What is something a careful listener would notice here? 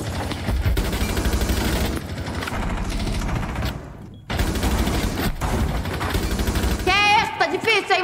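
Gunshots fire rapidly in a game.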